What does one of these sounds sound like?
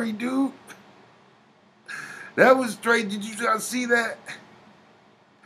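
A middle-aged man talks close to a microphone.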